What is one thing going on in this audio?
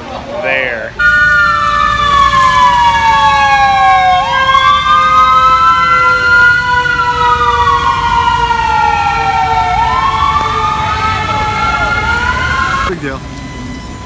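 An ambulance siren wails loudly nearby, rising and falling.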